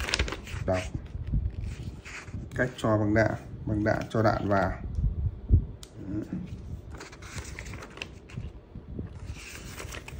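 Paper pages rustle and turn.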